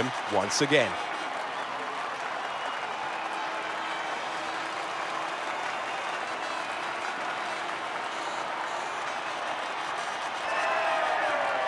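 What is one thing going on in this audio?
A crowd applauds and cheers steadily.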